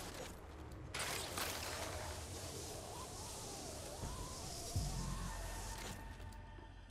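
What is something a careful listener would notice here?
A zipline cable whirs and hisses as someone slides along it.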